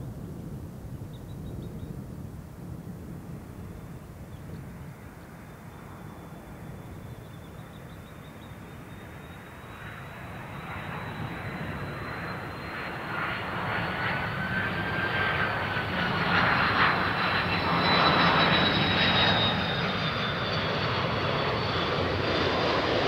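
A jet airliner's engines roar and whine, growing steadily louder as the plane approaches.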